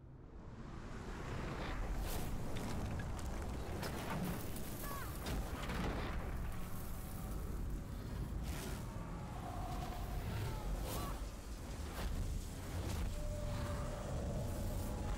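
Magic energy crackles and roars loudly.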